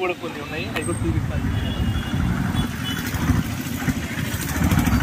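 A motorbike engine runs nearby.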